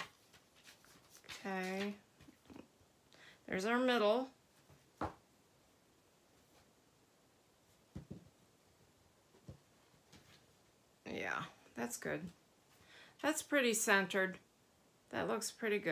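Paper pages rustle and flap as a book is handled.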